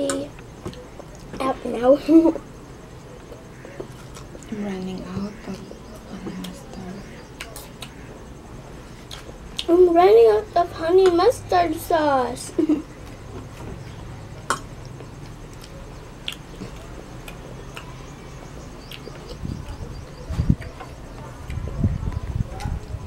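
A spoon and fork clink against a plate.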